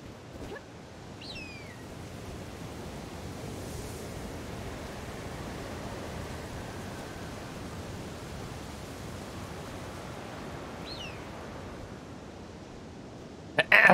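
A rushing wind swirls around a gliding figure, swelling and then easing off.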